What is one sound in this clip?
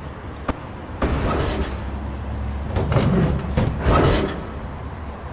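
A crowbar scrapes and clanks against a metal door.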